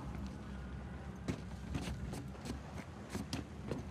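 Footsteps thud on a metal deck.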